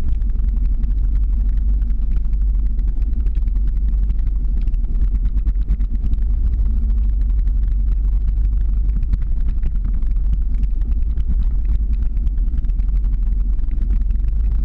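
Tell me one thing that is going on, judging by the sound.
Wind buffets the microphone with a steady low rumble.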